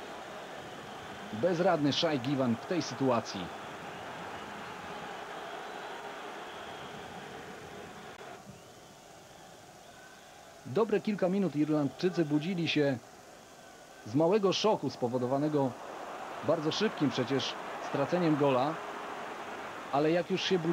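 A large crowd roars and murmurs in a stadium.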